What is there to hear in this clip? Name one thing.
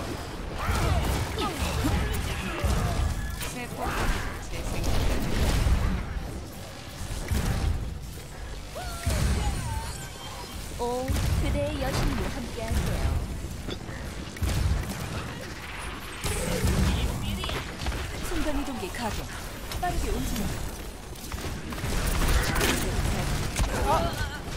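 Small game chimes and beeps sound.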